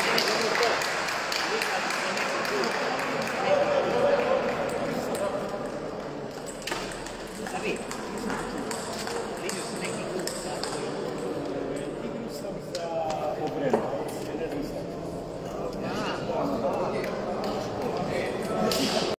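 Ping-pong balls click against paddles and tables in a large echoing hall.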